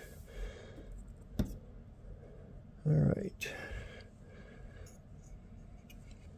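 Light wooden sticks click and tap softly as a hand handles them.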